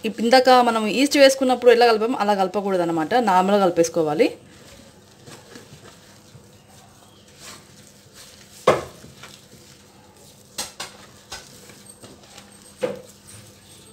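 Hands squish and knead crumbly dough in a metal bowl.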